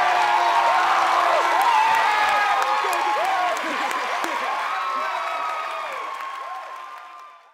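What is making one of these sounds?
A crowd of young people cheers and screams excitedly, then fades away.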